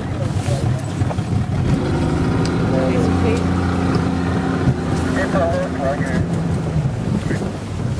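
A boat's outboard motor hums steadily, then stops.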